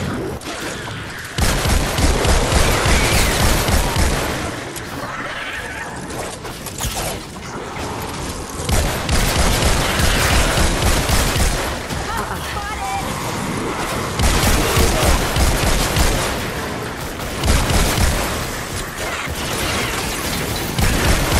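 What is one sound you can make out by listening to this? Energy weapons zap and crackle in rapid bursts.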